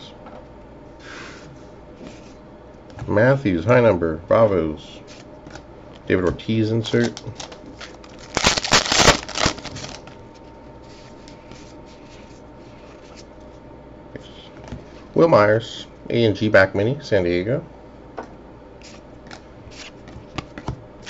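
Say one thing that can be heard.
Trading cards rustle and flick softly as they are shuffled through by hand.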